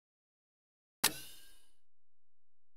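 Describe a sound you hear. A short chime sounds as a menu is confirmed.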